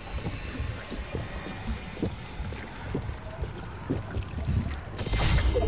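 A character gulps down a drink with game sound effects.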